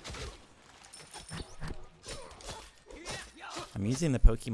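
Magic spell blasts whoosh and crackle in quick bursts.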